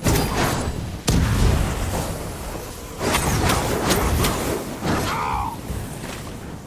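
Fiery explosions burst with deep booms.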